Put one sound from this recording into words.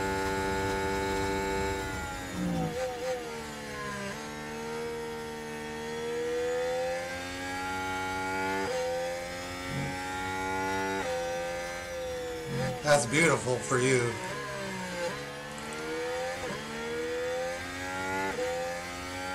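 A racing car engine roars steadily, its pitch rising and dropping with gear changes.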